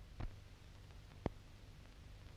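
A metal latch clicks.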